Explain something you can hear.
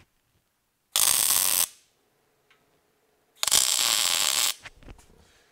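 An arc welder crackles and hisses in short bursts.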